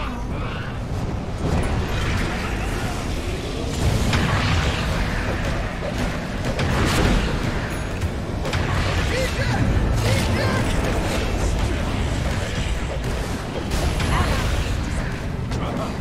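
Magic blasts and explosions boom and crackle in a busy video game battle.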